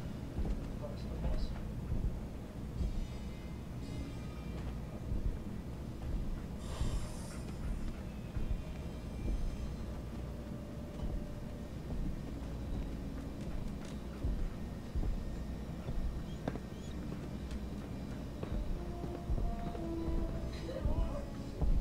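Footsteps thud softly on a hard floor.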